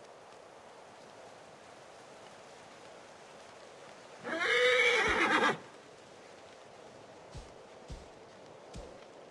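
A horse's hooves thud softly on a dirt path.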